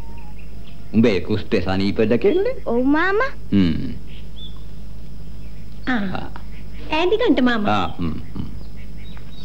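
A woman talks nearby in a raised voice.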